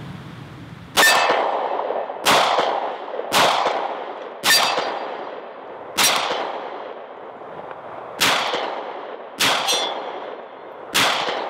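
A pistol fires shots that echo across open hills.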